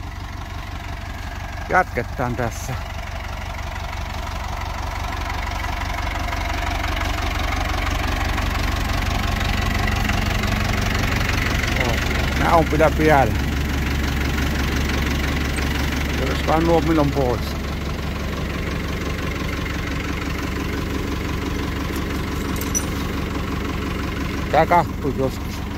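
A tractor engine idles nearby with a steady low rumble.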